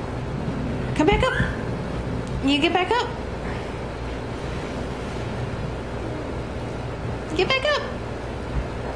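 A young boy talks playfully close by.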